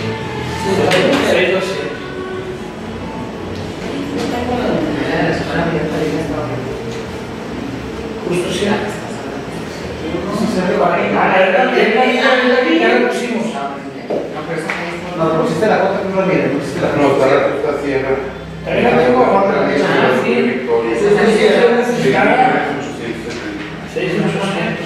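A middle-aged man speaks steadily to a group.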